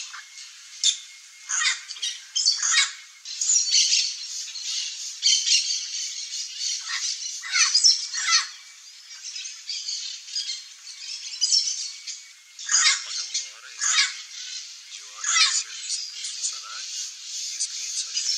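Birds chirp and call in quick, sharp bursts nearby.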